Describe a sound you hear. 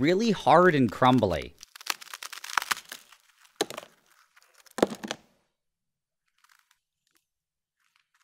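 A frozen ice cream bar cracks and snaps apart.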